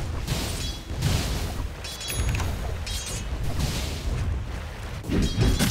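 Magic spells and weapon clashes crackle and thud in a fast battle.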